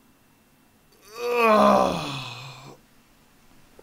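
A young man shouts loudly with excitement.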